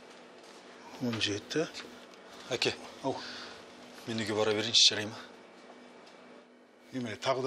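A young man answers calmly nearby.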